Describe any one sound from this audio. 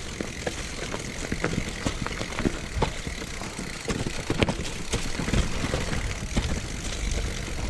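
Bicycle tyres crunch and rattle over dry leaves and rough ground.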